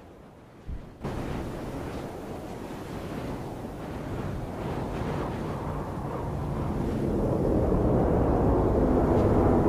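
A burning jet plane roars as it dives, growing louder.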